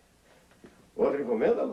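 A man speaks clearly nearby.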